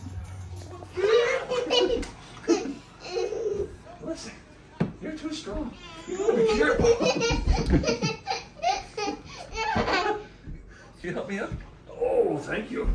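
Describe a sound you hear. A toddler squeals and babbles excitedly.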